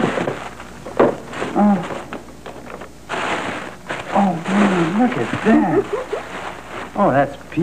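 Tissue paper rustles and crinkles as it is unwrapped.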